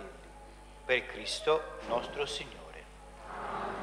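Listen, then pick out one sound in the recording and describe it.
A man reads aloud in a clear voice, in an echoing hall.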